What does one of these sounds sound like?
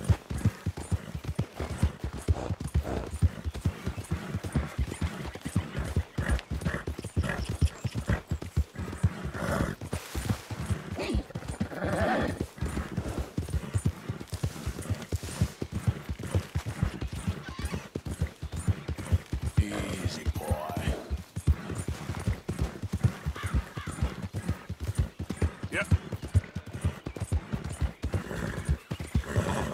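A horse's hooves thud steadily on a dirt trail.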